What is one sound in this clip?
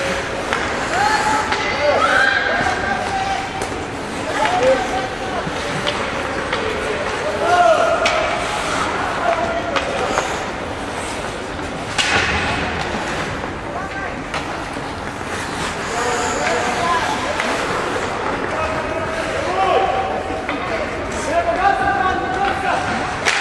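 Skates scrape and hiss on the ice.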